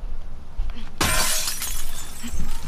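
Glass shatters loudly.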